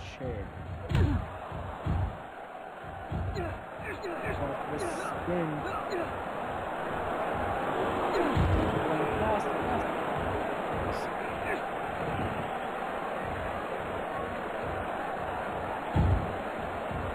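Heavy thuds sound as wrestlers slam onto the mat.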